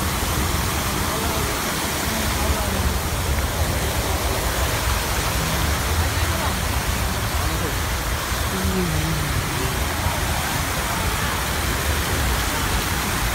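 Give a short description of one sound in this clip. Fountain jets splash into a pool outdoors.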